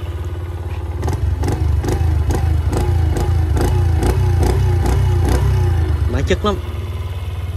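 A motorcycle engine revs up as the throttle is twisted, then settles back.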